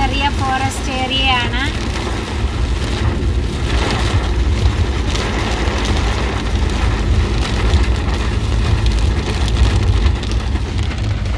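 Heavy rain and hail pelt a car's windshield.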